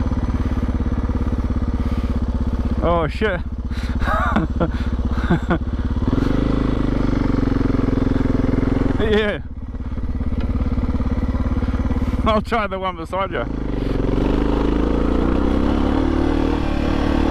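A dirt bike engine revs loudly close by, rising and falling in pitch.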